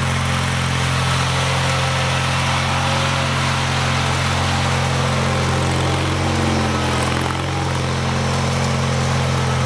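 A snow plow blade scrapes across pavement.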